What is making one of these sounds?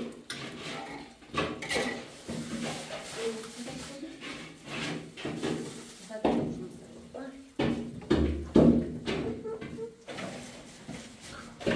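An elderly woman talks calmly nearby.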